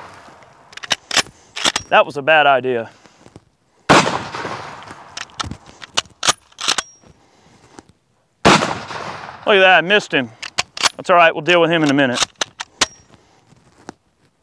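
A shotgun's pump action clacks as it is racked.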